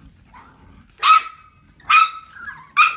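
A puppy yelps sharply.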